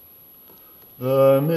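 An elderly man chants loudly through a microphone.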